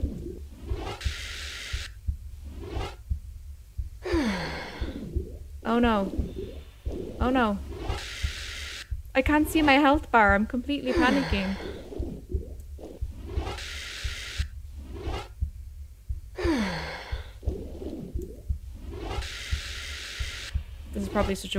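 A short whooshing rush sounds several times.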